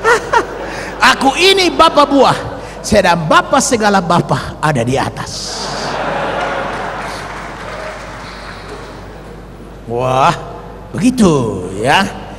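A man speaks loudly and with animation through a microphone in a large hall.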